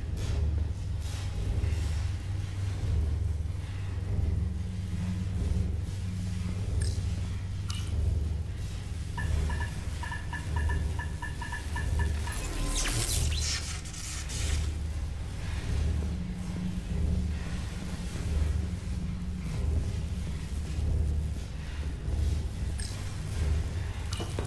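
A deep machine hum drones steadily throughout.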